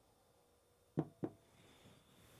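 Ice cubes clink against glass.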